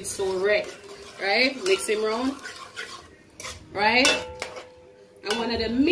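A ladle stirs and scrapes a pot of soup.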